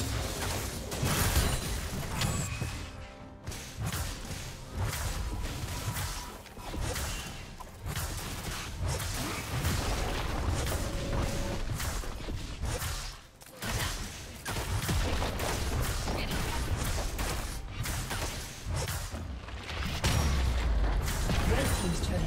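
Game combat effects crackle, whoosh and thud in quick bursts.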